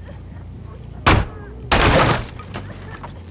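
A wooden pallet crashes down with a loud bang.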